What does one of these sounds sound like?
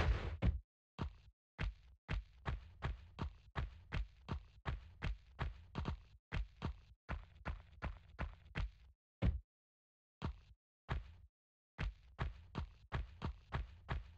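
Footsteps thud quickly and evenly on a stone floor.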